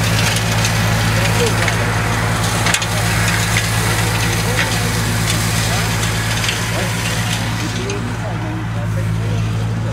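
A tractor engine hums steadily nearby.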